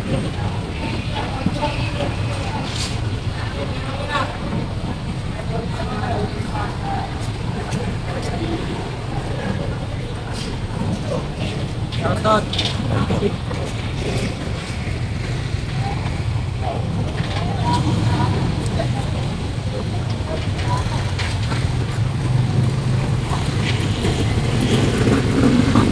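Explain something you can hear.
A busy crowd murmurs and chatters nearby, outdoors.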